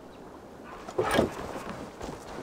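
A heavy blow strikes with a thud.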